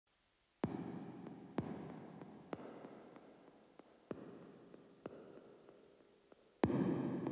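Electronic dance music plays with a steady, punchy beat.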